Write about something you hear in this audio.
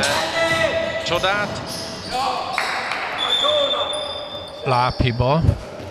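Sneakers squeak sharply on a hard court floor in a large echoing hall.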